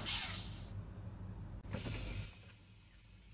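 Bus doors open with a sharp hiss of air.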